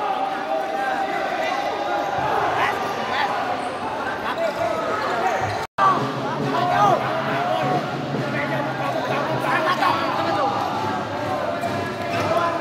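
Sneakers squeak sharply on an indoor court in an echoing hall.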